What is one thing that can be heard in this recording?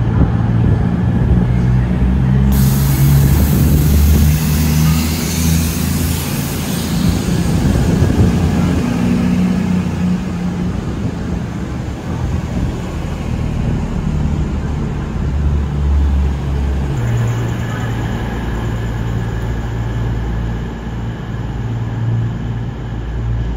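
A diesel train engine rumbles and hums close by.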